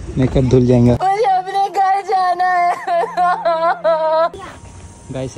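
A young woman wails and sobs.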